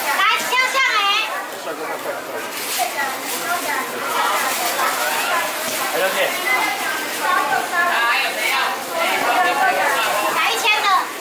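A crowd of men and women talk over one another nearby.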